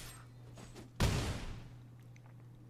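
A heavy game sound effect thumps as a creature attacks.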